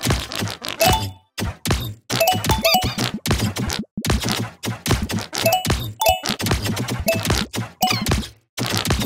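Bright chimes ring as coins are collected in a game.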